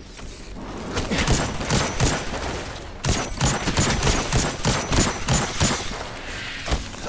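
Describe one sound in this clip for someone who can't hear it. A rifle fires rapid shots in quick bursts.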